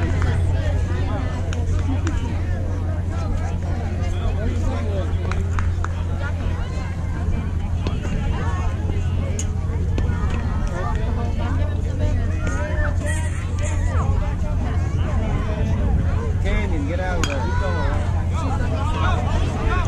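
Girls call out and cheer from across an open field.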